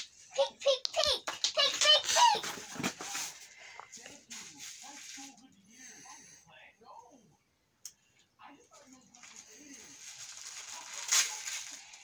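Tissue paper rustles in a cardboard box.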